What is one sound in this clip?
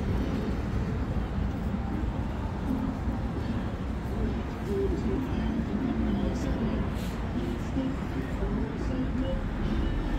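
A crowd of people murmurs and chatters nearby outdoors.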